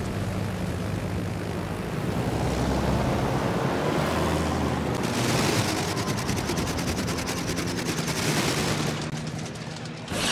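Anti-aircraft guns fire in rapid bursts.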